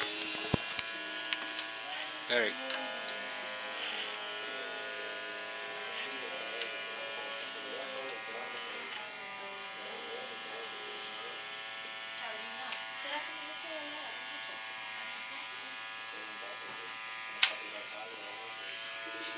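Electric hair clippers buzz steadily close by.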